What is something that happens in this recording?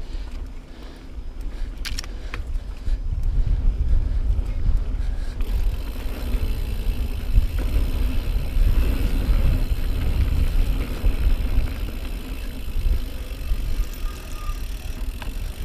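Wind rumbles loudly against a moving bike.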